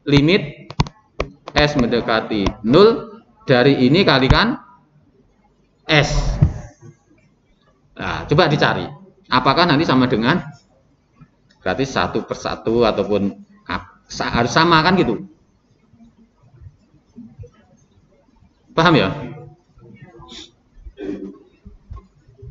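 A man speaks calmly into a microphone, explaining in short bursts.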